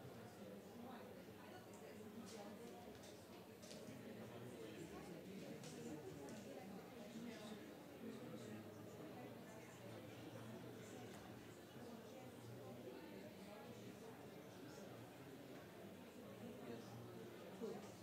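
Many men and women chatter at once in a large room.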